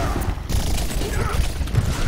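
A heavy gun fires rapid energy blasts.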